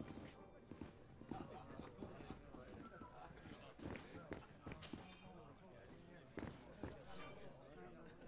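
Footsteps clack on a hard floor.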